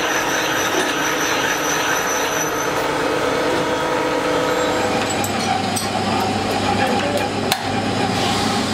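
A machine drill grinds steadily through metal.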